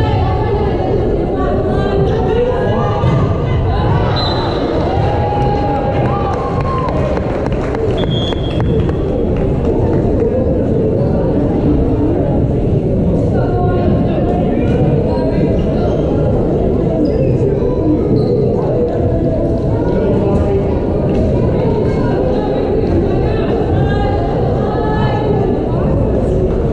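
A crowd chatters and cheers steadily in a large echoing gym.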